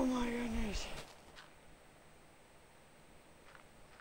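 A shovel digs into dirt with soft scraping thuds.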